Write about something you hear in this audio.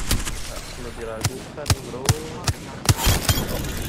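Shotgun blasts boom one after another.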